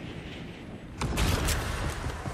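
A heavy thud lands on wood.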